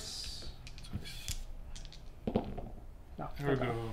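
Dice clatter on a table.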